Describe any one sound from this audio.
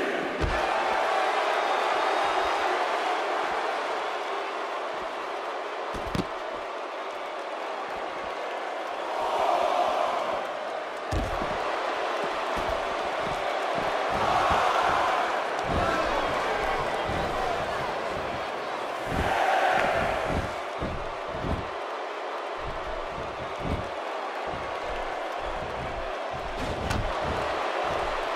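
A crowd cheers steadily throughout.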